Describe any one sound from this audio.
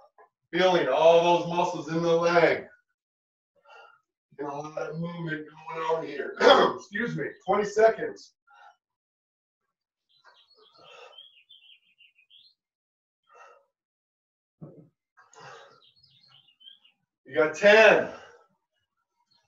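A middle-aged man gives exercise instructions with energy through a headset microphone.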